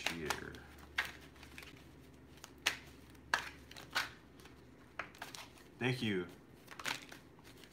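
Small objects click and rustle in a man's hands.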